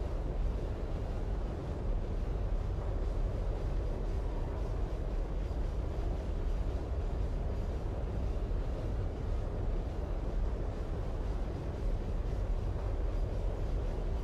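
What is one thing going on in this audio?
Steam hisses steadily from a pipe.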